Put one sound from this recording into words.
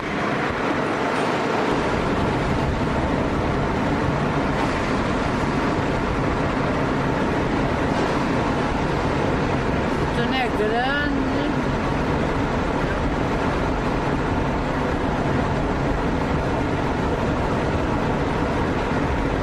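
Car tyres rumble steadily on the road.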